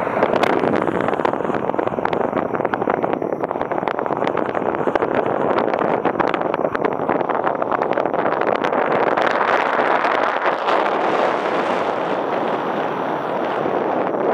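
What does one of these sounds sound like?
Wind rushes loudly and steadily past a paraglider in flight.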